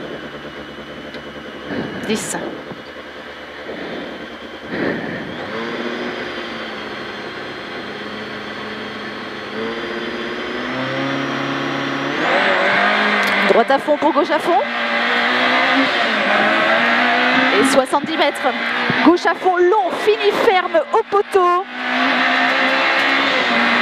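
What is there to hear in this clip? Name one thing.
A car engine idles, then revs loudly and roars as the car accelerates hard.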